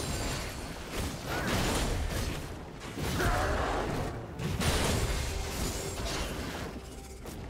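Magic spells crackle and whoosh in bursts during a video game fight.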